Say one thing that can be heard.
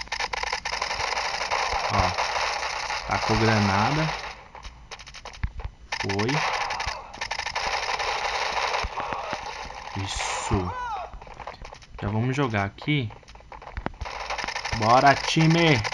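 A suppressed rifle fires in bursts.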